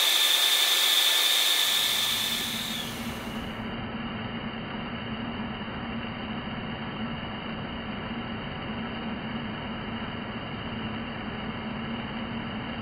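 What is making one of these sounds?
A lathe's cutting tool scrapes steadily against spinning metal.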